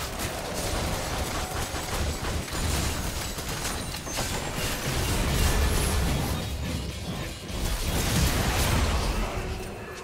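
Game spells crackle and whoosh in quick bursts.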